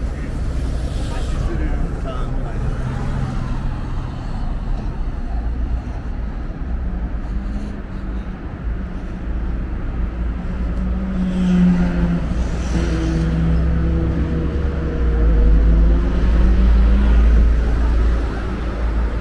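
Wind blusters into the microphone outdoors.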